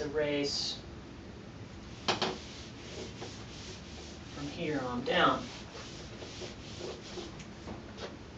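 An eraser wipes across a whiteboard.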